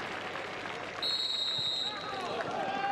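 A referee blows a short, shrill whistle.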